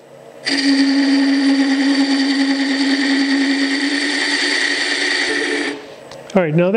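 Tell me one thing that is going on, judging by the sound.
A chisel cuts into spinning wood on a lathe with a steady, rasping whine.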